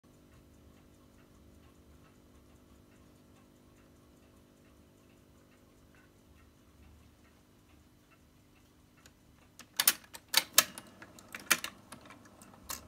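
A record player motor hums faintly as a record spins.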